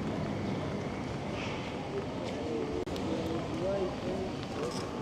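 Tyres roll over concrete pavement.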